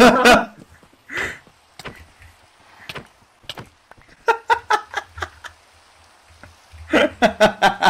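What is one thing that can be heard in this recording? A young man laughs loudly into a close microphone.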